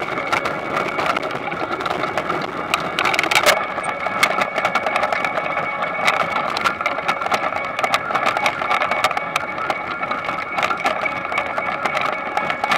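A harvesting machine hums and rattles steadily.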